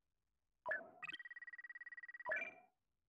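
A score counter ticks rapidly as it tallies up.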